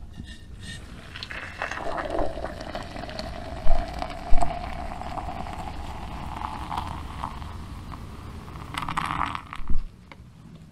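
Hot water pours from a kettle into a metal mug.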